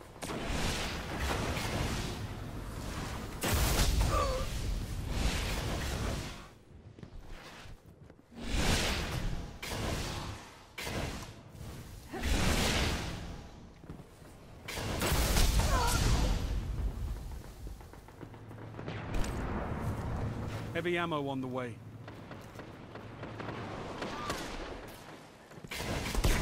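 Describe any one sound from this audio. Guns fire in loud bursts, with booming blasts.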